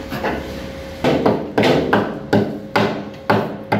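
A metal tool knocks and clanks against steel with a hollow ring.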